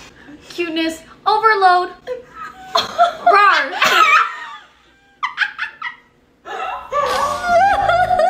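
Young women squeal and shriek excitedly.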